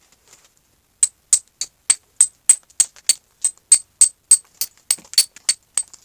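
A mallet taps sharply on a carving tool in a quick, steady rhythm.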